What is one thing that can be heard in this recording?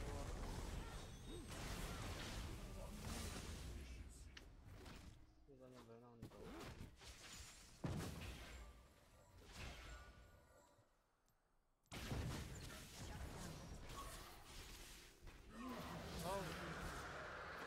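Magic blasts and clashing weapons crackle in a game battle.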